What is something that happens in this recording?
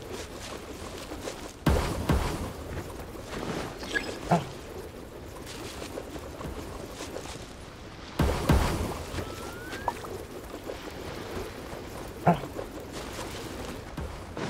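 Footsteps patter on sand.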